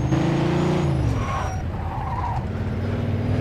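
Tyres screech as a car skids around a corner.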